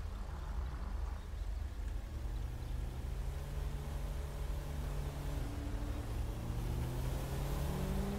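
Tyres roll on asphalt.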